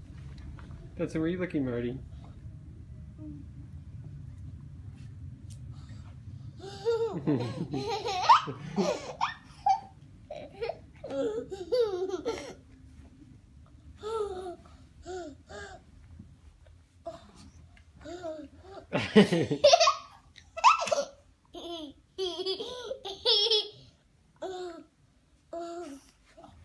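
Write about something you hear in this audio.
A young child squeals and babbles playfully close by.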